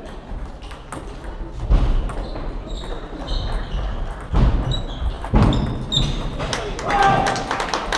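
A ping-pong ball clicks back and forth on paddles and a table in a large echoing hall.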